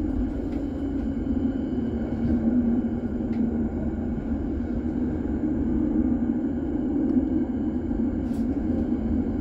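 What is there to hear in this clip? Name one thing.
Tram wheels click over rail joints.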